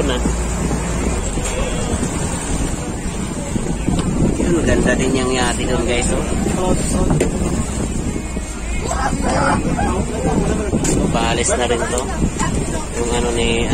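Water splashes and laps against a boat's hull.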